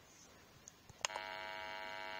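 Lights switch on with a loud clunk.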